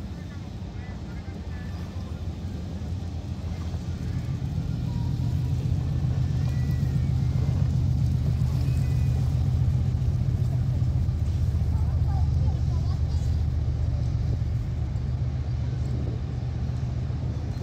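A boat engine rumbles low and steady nearby.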